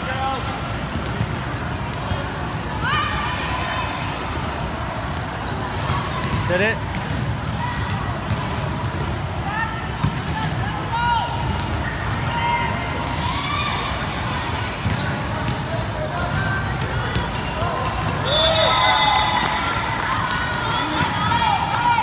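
Young girls call out to each other in a large echoing hall.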